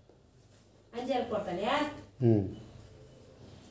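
A young child talks close by.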